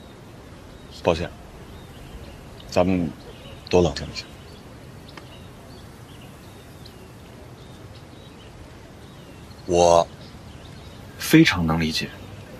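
A young man speaks in short, calm phrases, close by.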